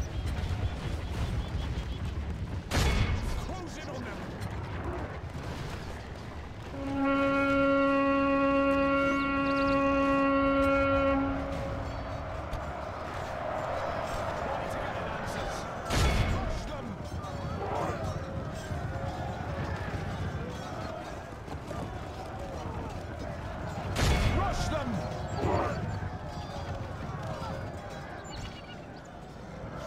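Armies clash in a distant battle.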